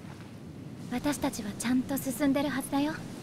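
A young boy speaks cheerfully, close by.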